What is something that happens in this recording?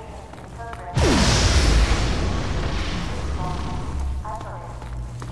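A rifle fires a short burst of loud shots that echo away.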